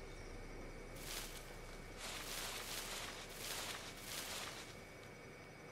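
Tall cornstalks rustle and swish as a game character runs through them.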